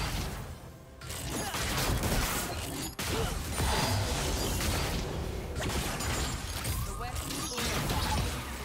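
Game spell blasts and weapon hits crackle and thud in a busy fight.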